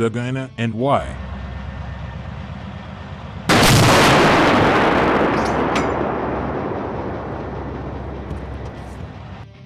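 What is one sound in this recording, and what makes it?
An engine idles with a low steady rumble.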